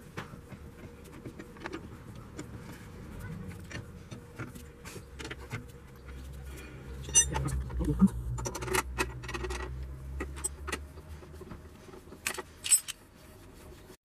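A lug wrench clicks and clanks against wheel nuts.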